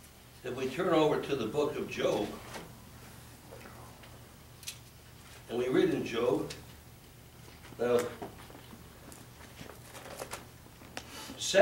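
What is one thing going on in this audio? An elderly man speaks with feeling through a microphone, in short bursts.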